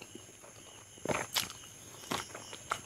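A man chews food wetly, close to a microphone.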